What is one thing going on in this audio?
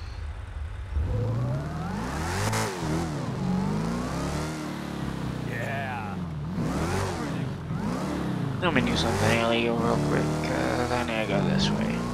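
A car engine revs hard, its pitch rising and falling as the car speeds up and slows down.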